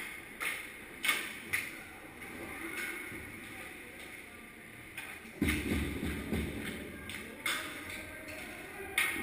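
Skates scrape and swish across ice in a large echoing rink.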